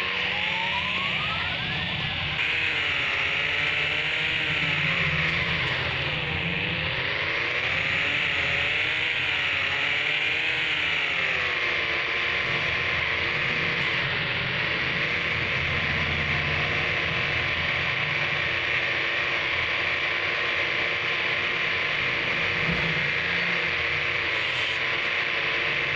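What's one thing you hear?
A car engine roars and revs up and down, then holds a steady drone.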